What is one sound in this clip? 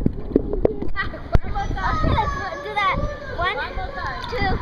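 Water splashes and laps at the surface.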